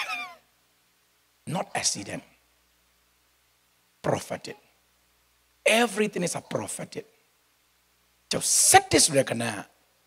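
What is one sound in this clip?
A middle-aged man speaks with animation into a microphone, in short bursts with pauses.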